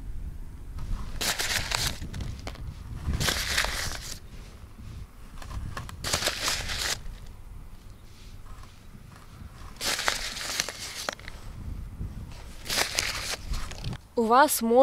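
A plastic bag rustles and crinkles in short bursts.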